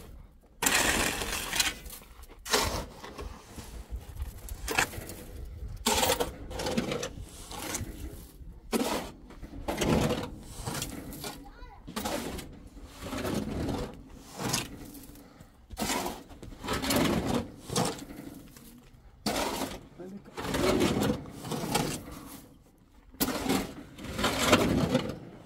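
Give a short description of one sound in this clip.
Sand pours into a metal wheelbarrow.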